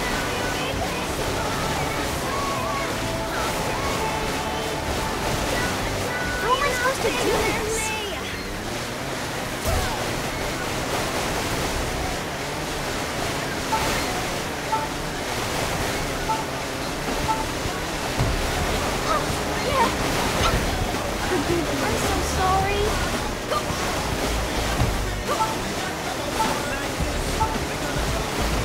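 A jet ski engine roars steadily.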